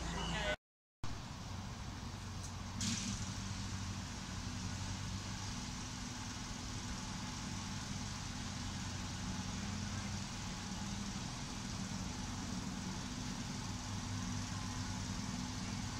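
A small locomotive engine hums steadily in the distance.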